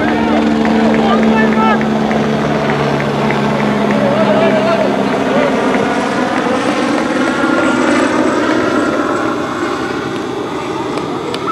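Several men shout and cheer from a distance outdoors.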